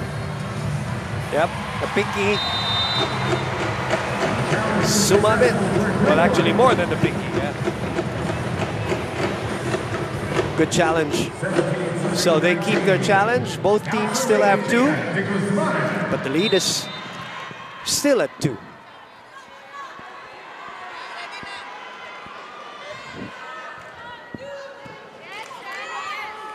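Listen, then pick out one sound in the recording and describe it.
A large crowd cheers and chatters loudly in a big echoing arena.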